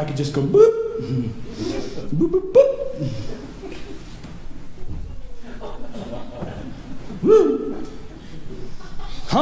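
A man preaches loudly and passionately through a microphone and loudspeakers in an echoing hall.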